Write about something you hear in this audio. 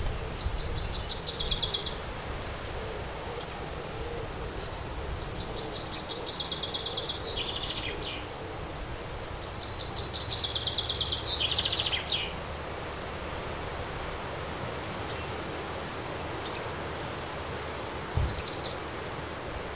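Small birds chirp in quick, high trills close by.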